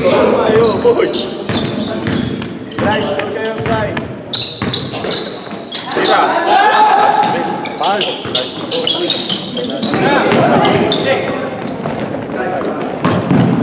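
A basketball bounces on a hard court in an echoing gym.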